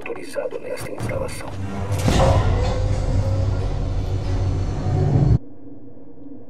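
A heavy door slides open with a deep mechanical rumble.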